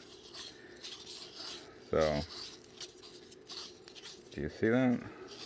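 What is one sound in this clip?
Plastic rings rub and tap softly against each other in a person's hands.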